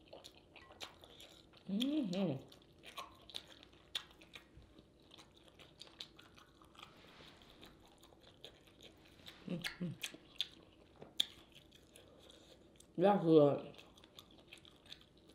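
Food squelches and crackles as a woman eats close to a microphone.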